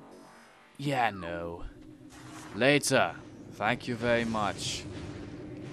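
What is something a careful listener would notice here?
Electronic game sound effects sweep up and down in pitch.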